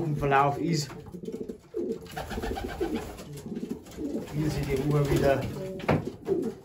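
Pigeons coo softly and steadily close by.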